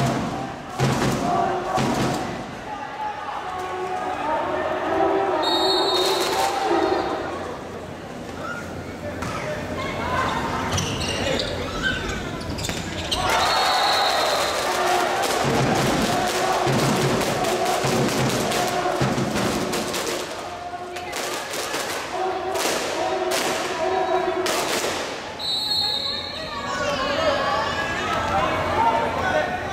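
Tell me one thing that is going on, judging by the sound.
A large crowd chants and cheers loudly in an echoing hall.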